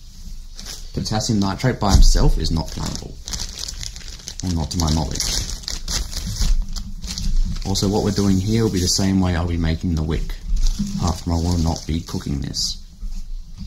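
A young man talks calmly into a nearby microphone.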